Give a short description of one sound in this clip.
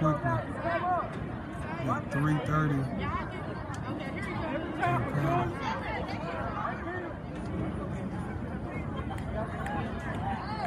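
A crowd of spectators chatters and shouts nearby, outdoors.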